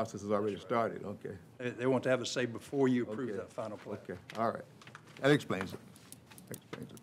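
A man speaks calmly into a microphone in a large room.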